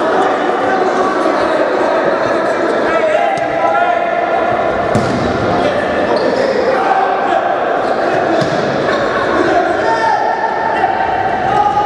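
A crowd cheers and chatters in a large echoing hall.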